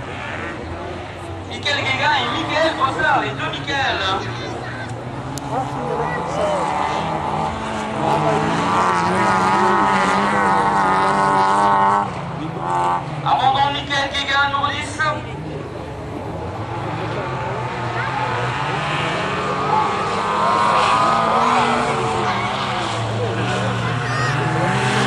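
Several car engines roar and rev as cars race over dirt.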